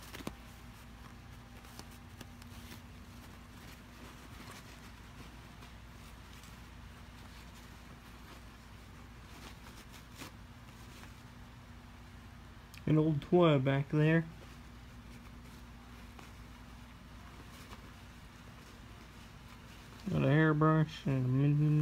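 Paper crinkles and rustles as a cat paws at it.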